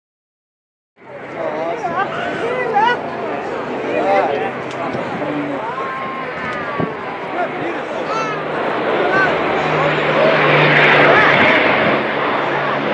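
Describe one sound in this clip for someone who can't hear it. Propeller aircraft engines drone steadily overhead.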